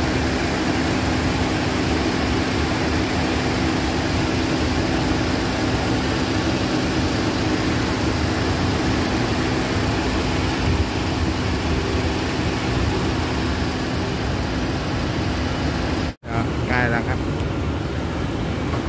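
A car engine idles steadily with a low hum.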